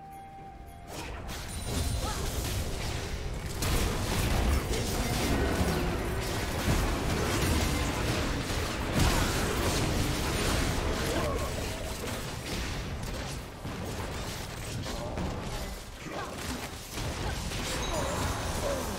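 Game battle effects clash and burst with spell sounds and hits.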